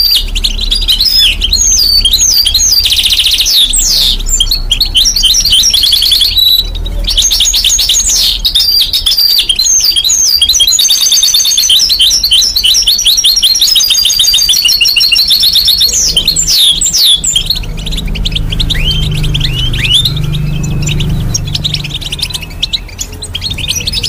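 A small bird sings a fast, chattering warble close by.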